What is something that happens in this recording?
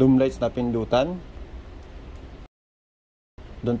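A plastic light switch clicks.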